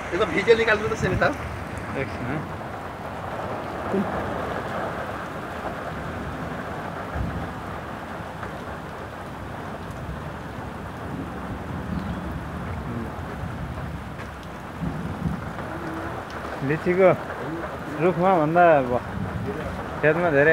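Hail patters on leaves and ground outdoors.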